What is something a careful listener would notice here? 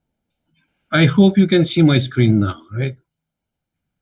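An older man speaks calmly through an online call.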